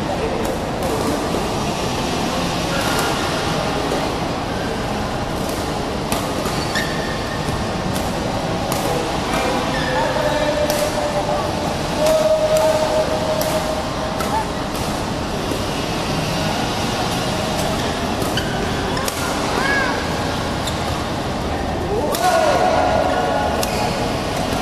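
A busy hall echoes with the din of many players.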